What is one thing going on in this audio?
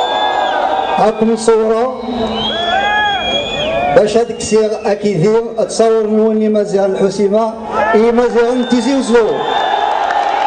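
A man speaks with animation through loudspeakers.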